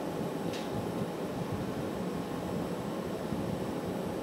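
Hot glass rolls softly on a steel plate.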